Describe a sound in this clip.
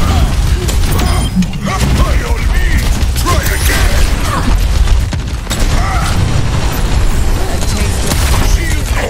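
A heavy gun fires rapid booming blasts.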